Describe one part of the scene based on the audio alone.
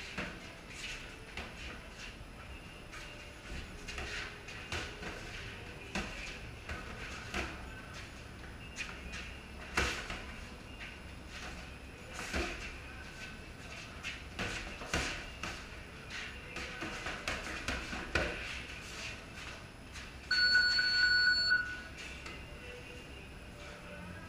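Sneakers shuffle and squeak on a concrete floor.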